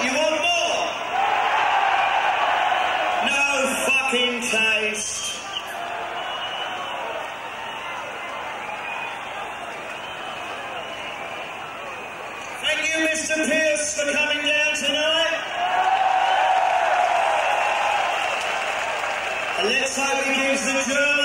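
A large crowd cheers and screams loudly in a big open space.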